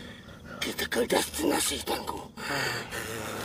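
A man cries out and groans loudly in pain, close by.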